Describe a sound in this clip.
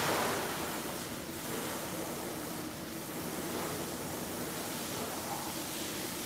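Water sprays with a steady hiss in a large echoing hall.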